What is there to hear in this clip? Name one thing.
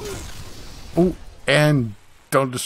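A body thuds onto the floor.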